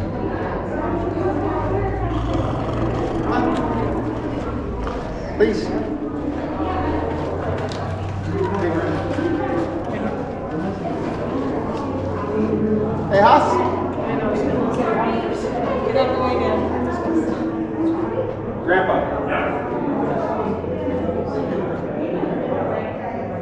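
Several adults chatter and talk at a distance in an echoing space.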